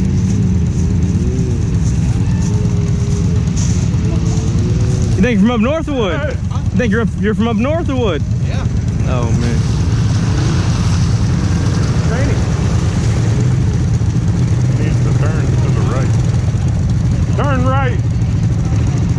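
Off-road vehicle engines rumble and rev nearby.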